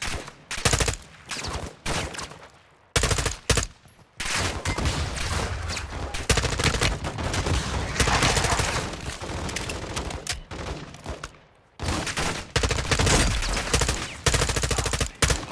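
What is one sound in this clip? A rifle fires rapid bursts of loud shots.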